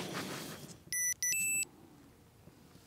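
A sports watch beeps a few times.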